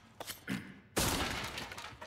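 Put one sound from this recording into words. A gunshot booms.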